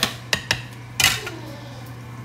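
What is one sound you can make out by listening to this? A jug is set down on a metal scale with a clunk.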